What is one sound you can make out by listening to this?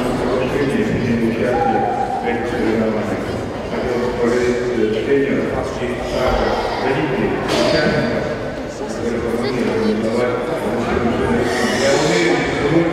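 A middle-aged man speaks firmly into a microphone, heard through loudspeakers in an echoing hall.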